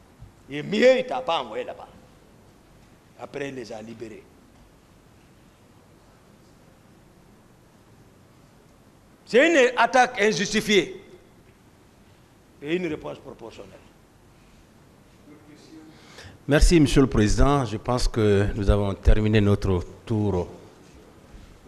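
A man speaks into a microphone in short bursts with pauses between them.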